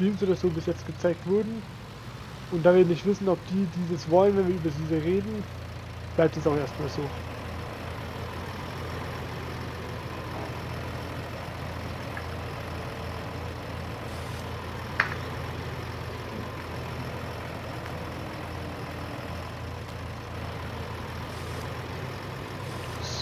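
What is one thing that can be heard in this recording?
A loader's engine hums steadily.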